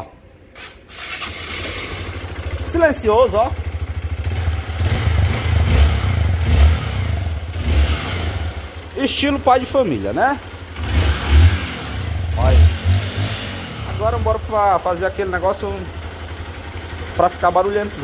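A motorcycle engine idles with a low, steady throb.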